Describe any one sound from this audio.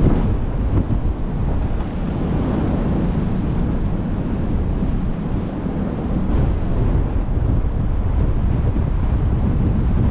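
Strong wind rushes and buffets loudly outdoors.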